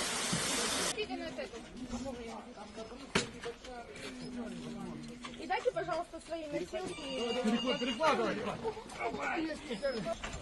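Men talk urgently nearby, outdoors.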